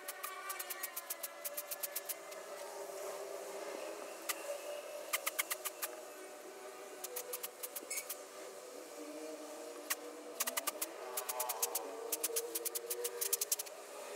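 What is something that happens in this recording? A paintbrush dabs liquid silicone.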